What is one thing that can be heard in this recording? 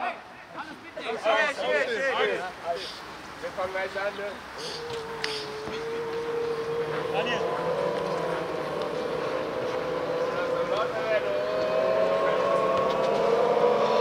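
A young man talks to a group with animation, close by.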